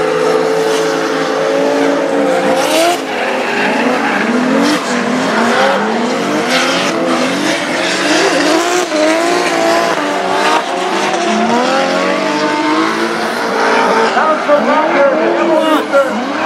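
Tyres screech as cars slide around a bend.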